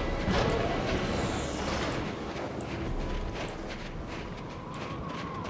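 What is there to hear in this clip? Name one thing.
Heavy boots crunch through snow.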